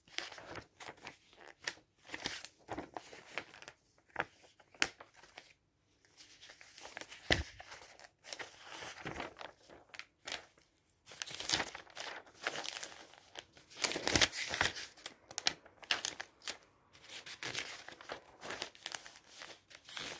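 Glossy paper pages rustle and flap as they are turned close by.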